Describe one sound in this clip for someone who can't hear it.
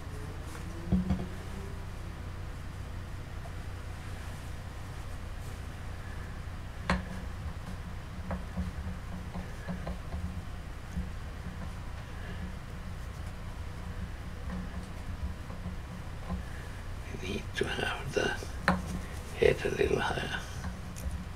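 Hands knock and tap lightly on a hard object.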